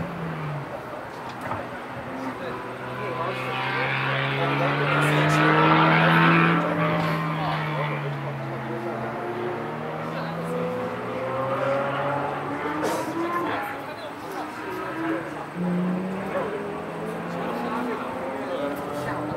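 Kart engines whine and rev around a track, rising and falling in pitch.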